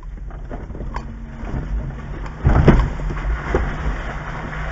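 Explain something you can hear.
A vehicle jolts and thumps over rough, muddy ground.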